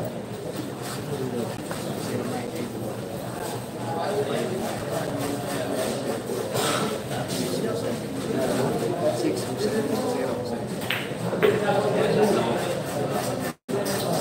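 A crowd of young men chatters nearby.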